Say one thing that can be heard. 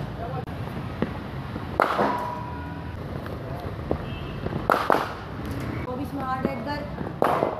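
A cricket bat sharply strikes a ball several times.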